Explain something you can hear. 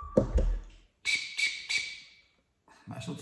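A whistle blows in short shrill toots.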